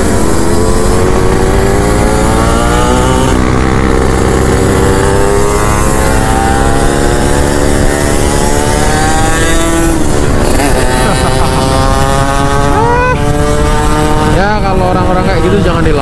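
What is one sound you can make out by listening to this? A scooter engine hums close by, its pitch rising and falling as it speeds up and eases off.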